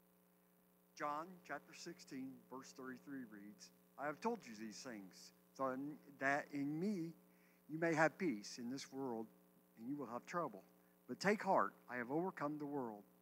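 An elderly man speaks calmly into a microphone, heard through loudspeakers in a hall.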